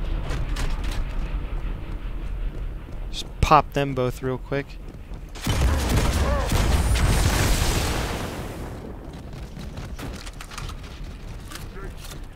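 Metallic clicks sound as a weapon is picked up.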